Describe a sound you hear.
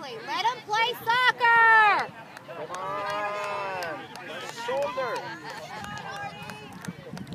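Young players shout loudly to each other outdoors across an open field.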